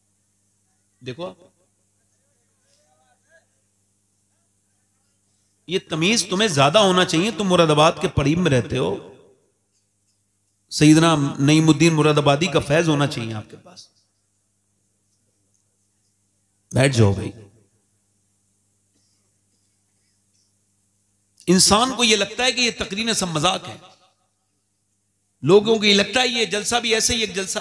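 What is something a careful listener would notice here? A man speaks with animation into a microphone, in bursts with pauses between them.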